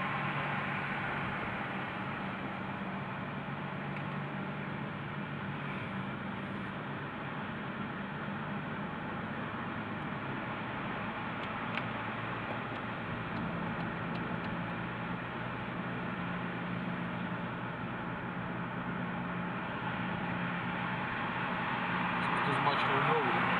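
Tyres roar steadily on a road.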